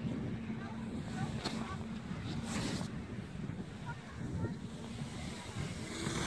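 Snow hisses and scrapes under a sled sliding downhill.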